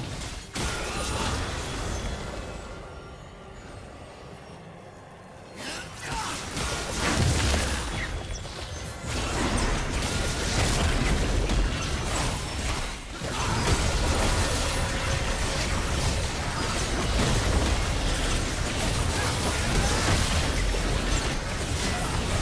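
Magic spells crackle and whoosh in a game battle.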